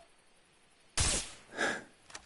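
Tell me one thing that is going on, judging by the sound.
A rifle shot cracks.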